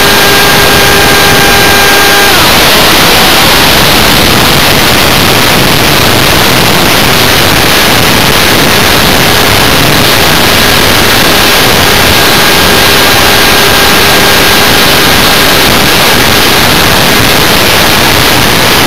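A small electric motor whines at a high pitch.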